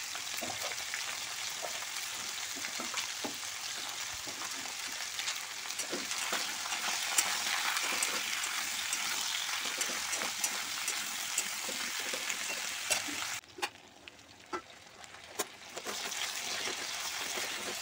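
Vegetables sizzle in hot oil.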